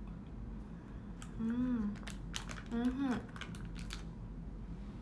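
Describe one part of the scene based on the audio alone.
Plastic crinkles in a young woman's hands.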